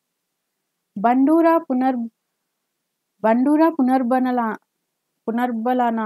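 A woman speaks calmly and clearly into a microphone, in short phrases with pauses.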